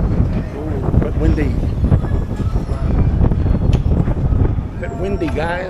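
An escalator rumbles steadily.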